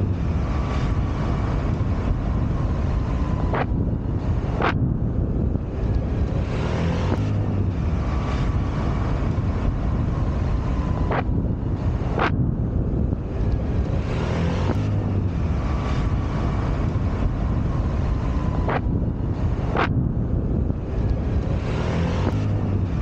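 A motor scooter drones steadily as it rides along.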